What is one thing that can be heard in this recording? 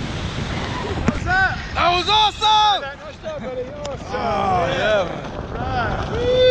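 A man laughs and talks cheerfully close by.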